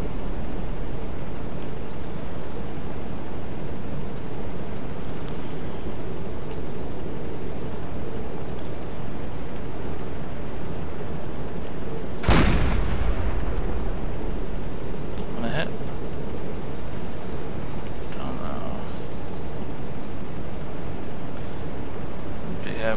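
Sea water washes and rumbles steadily.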